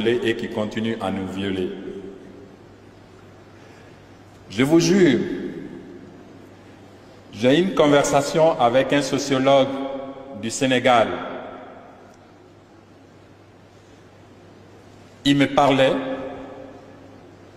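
A man speaks with animation into a microphone, in bursts, his voice echoing in a large hall.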